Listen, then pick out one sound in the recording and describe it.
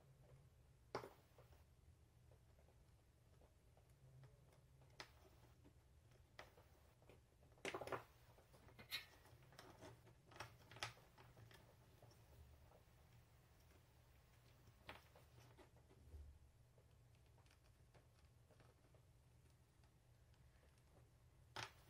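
Small parts and tools tap and click on a work surface.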